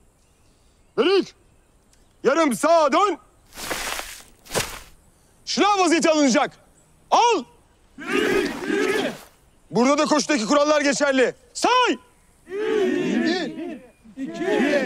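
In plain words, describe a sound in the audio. A man shouts commands loudly outdoors.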